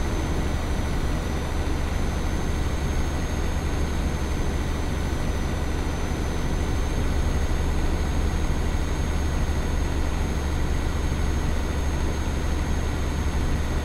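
A truck engine hums steadily while cruising.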